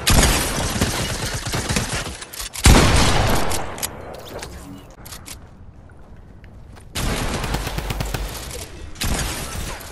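Guns fire in quick bursts of shots.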